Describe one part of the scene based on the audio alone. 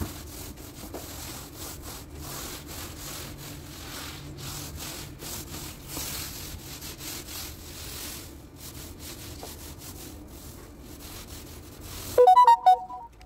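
Fabric rustles and brushes close by.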